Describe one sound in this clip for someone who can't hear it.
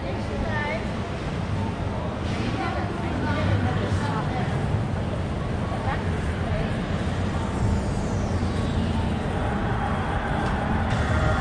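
A steady city hum fills the open air.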